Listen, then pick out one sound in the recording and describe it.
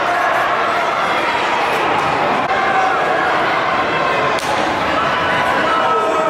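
Young men shout and celebrate close by.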